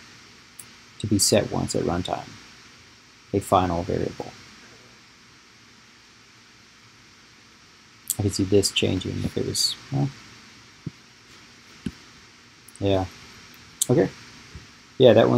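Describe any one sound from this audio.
A man talks calmly and close to a microphone, in short phrases with pauses.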